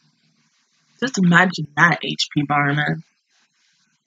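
A young woman speaks briefly and with animation, close to a microphone.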